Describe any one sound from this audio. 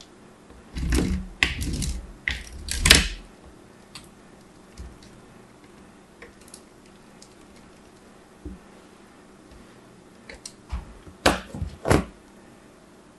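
Fingers scrape and crunch against a metal grater.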